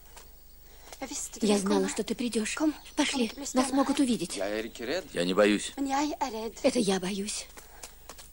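A young man speaks softly close by.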